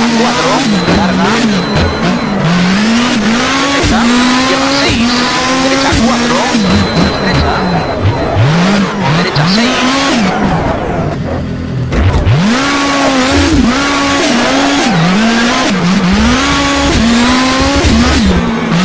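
A rally car engine revs hard, rising and falling as gears shift.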